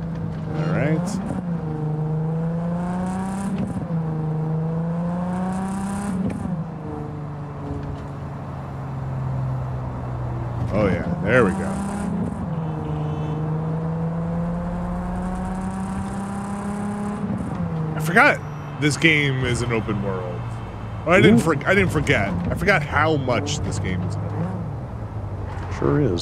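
A car engine hums and revs up and down steadily.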